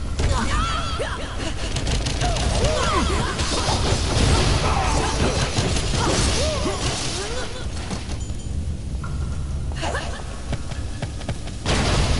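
Weapons clash and thud in a fast, busy fight.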